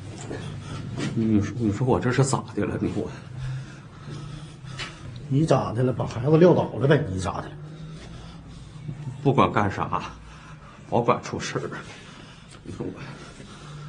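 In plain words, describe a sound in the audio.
A middle-aged man speaks with animation nearby.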